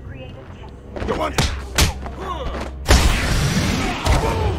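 Heavy punches and kicks thud in a brawl.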